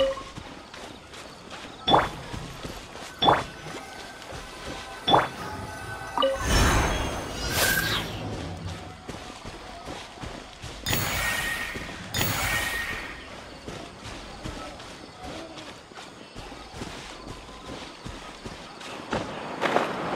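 Footsteps run through grass.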